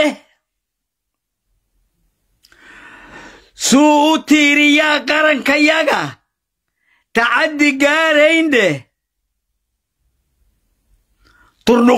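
An elderly man chants loudly in long, drawn-out phrases.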